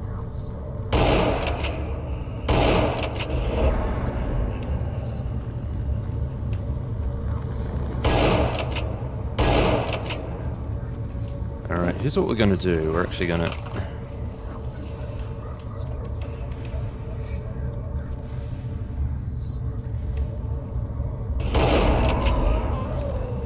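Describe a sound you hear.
A gun fires loud shots that echo briefly.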